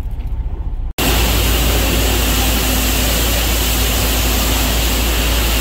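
A pressure washer sprays water with a loud steady hiss.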